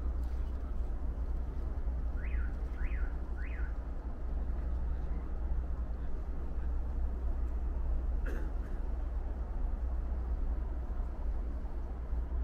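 Wind blows steadily outdoors with a low rumble.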